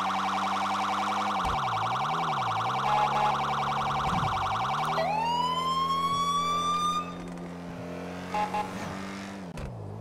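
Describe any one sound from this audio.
A car engine hums steadily, its pitch dipping and rising as the car slows and speeds up.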